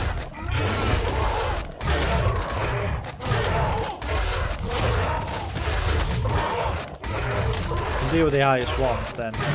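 Heavy blows thud repeatedly against a large creature.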